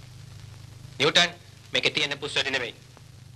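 A man speaks sharply and tensely nearby.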